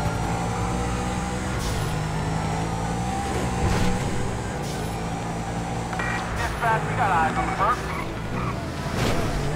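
A sports car engine roars steadily at speed.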